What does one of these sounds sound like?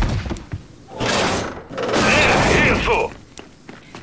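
A heavy machine gun fires a loud, rapid burst.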